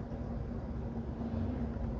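An oncoming truck rushes past.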